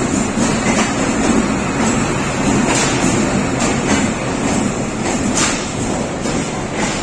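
A diesel locomotive rumbles past slowly.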